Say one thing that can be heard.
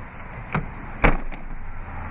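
A car's rear seat back folds down with a heavy thud.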